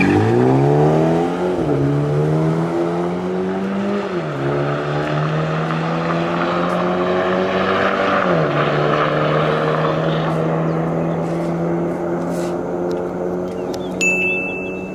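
A car engine roars at full throttle and fades into the distance.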